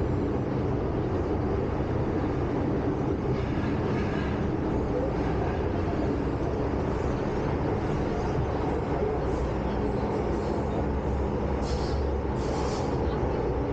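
A subway train rumbles and hums steadily along the track.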